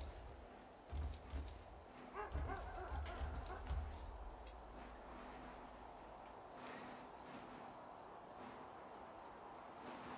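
Footsteps scuff softly across a roof.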